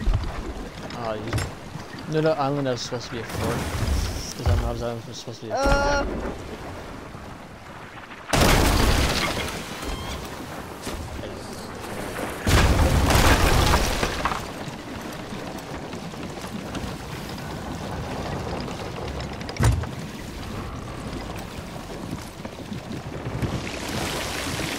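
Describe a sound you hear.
Ocean waves wash steadily.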